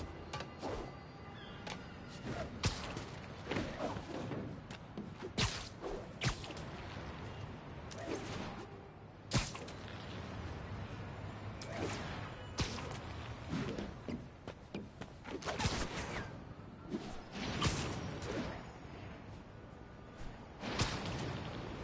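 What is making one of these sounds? Web lines shoot and snap with sharp thwips again and again.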